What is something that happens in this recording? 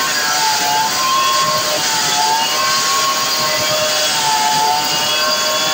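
A chainsaw engine roars loudly and steadily while cutting through wood.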